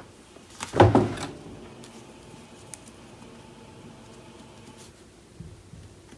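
A pencil scratches lightly on paper.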